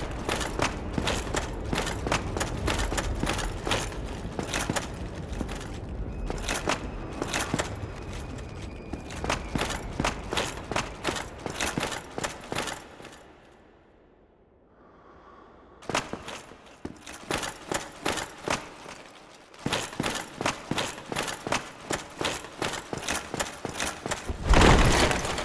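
Armoured footsteps clank on stone as a knight runs.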